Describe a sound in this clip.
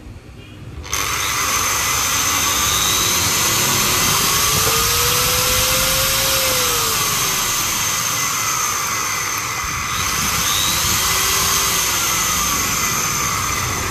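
An angle grinder whirs loudly, its motor pitch rising and falling as its speed changes.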